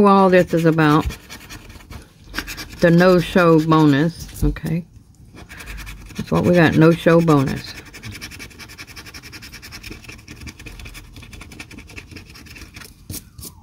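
A coin scratches across a lottery ticket.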